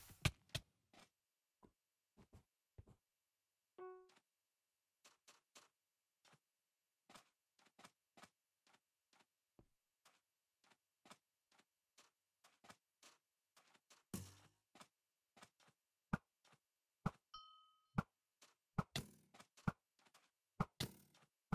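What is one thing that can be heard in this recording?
Game footsteps patter steadily on sand.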